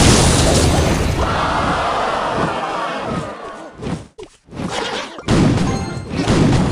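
Cartoonish battle sound effects clash and clatter.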